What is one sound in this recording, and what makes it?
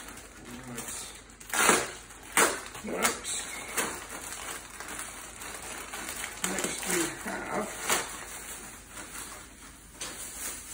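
A plastic bag crinkles and rustles in a man's hands.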